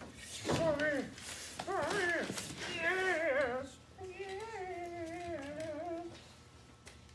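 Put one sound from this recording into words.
A dog whines and yowls close by.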